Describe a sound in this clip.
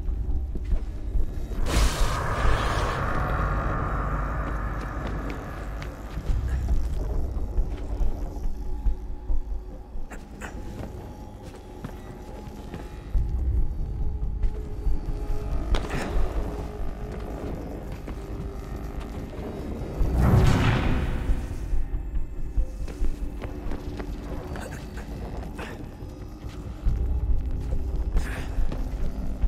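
Quick footsteps patter on a hard surface.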